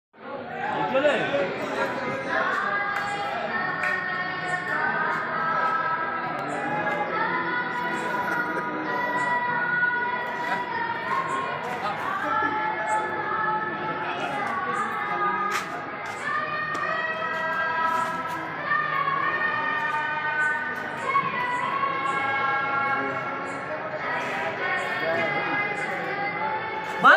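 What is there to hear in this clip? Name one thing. A crowd of men sings together slowly in an echoing hall.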